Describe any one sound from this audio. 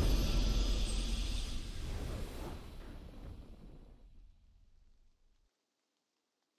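A triumphant game victory sound swells and slowly fades away.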